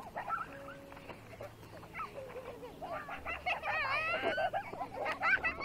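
Young children shout and squeal with excitement outdoors.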